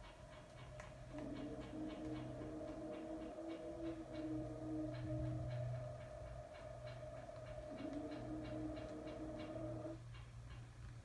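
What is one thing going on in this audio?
Dark, droning menu music plays from a television's speaker.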